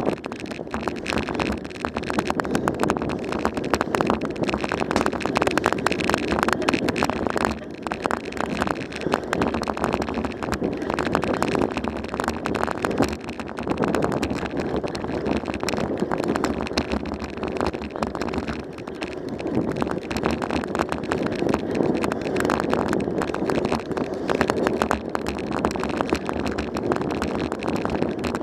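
Tyres roll steadily over a paved road.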